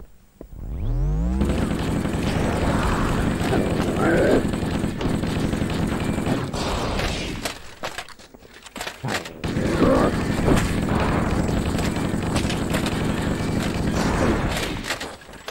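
An assault rifle fires in rapid bursts.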